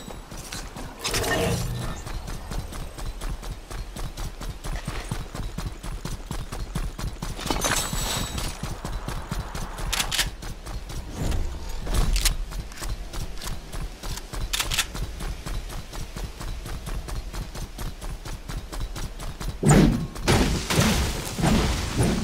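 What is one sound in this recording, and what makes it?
Footsteps patter quickly and steadily on the ground.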